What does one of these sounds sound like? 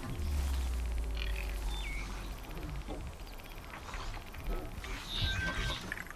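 A bowstring creaks as it is drawn taut.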